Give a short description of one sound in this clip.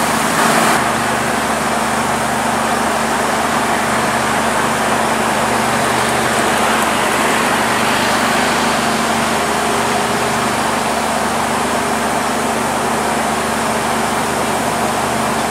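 Train wheels roll and clatter over the rails.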